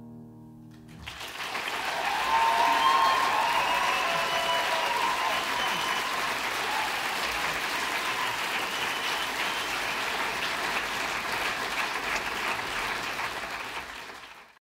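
A large crowd applauds and cheers loudly in a large hall.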